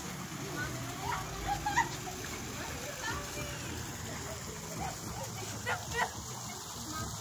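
Young girls talk and call out nearby outdoors.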